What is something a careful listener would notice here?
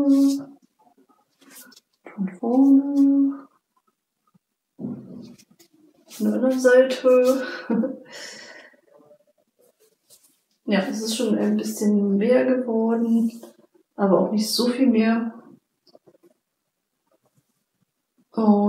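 A young woman talks calmly and close by, in short phrases.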